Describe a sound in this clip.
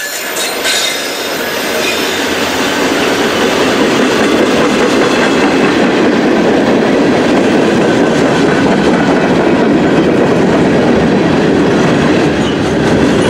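Freight cars roll past with a loud rumble and rattle on the tracks.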